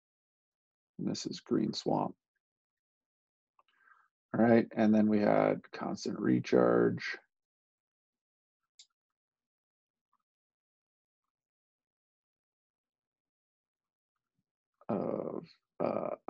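A man explains calmly through a microphone, in short bursts with pauses.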